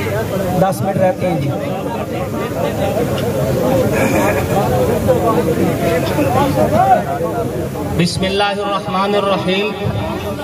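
A man chants loudly through a microphone and loudspeakers outdoors.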